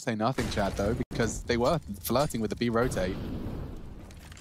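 A rifle fires a burst of gunshots.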